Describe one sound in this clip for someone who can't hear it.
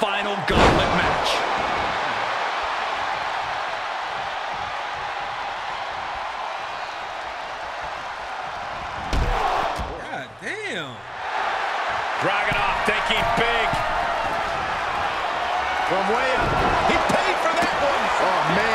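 A crowd cheers steadily in a large arena.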